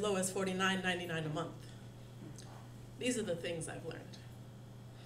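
A young woman speaks calmly into a microphone, heard through a loudspeaker.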